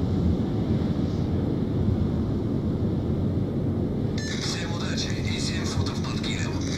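A warship's engine rumbles low and steady.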